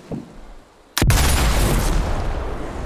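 A rifle fires with a loud blast that rings out.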